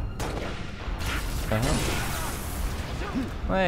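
Energy weapons fire in rapid bursts, with bolts hissing past.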